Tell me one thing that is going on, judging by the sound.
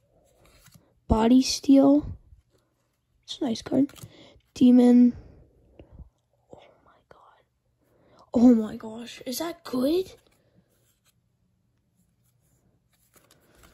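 Playing cards slide and rustle softly as hands shuffle through them.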